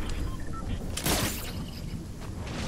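Thunder cracks from a lightning strike.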